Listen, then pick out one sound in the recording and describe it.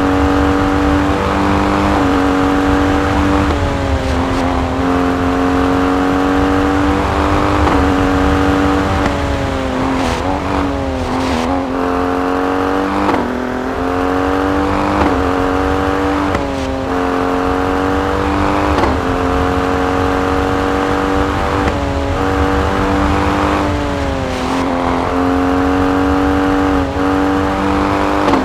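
A rally SUV engine roars at high revs.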